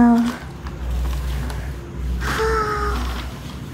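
Plastic wrapping rustles as a gift is unwrapped.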